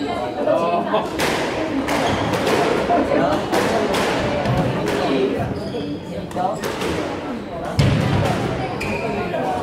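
A squash ball is struck hard by racquets and smacks against the walls of an echoing court.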